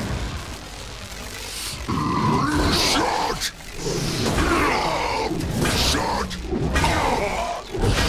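Electricity crackles and sparks.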